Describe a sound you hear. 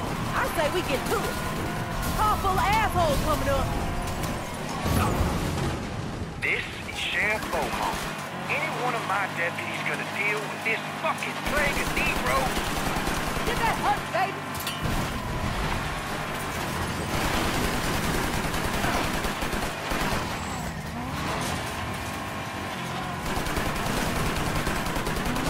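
A vehicle engine roars.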